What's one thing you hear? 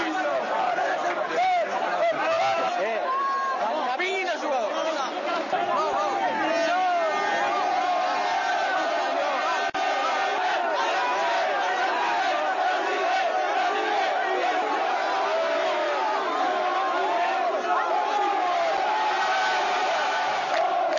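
A large crowd shouts and cheers loudly close by.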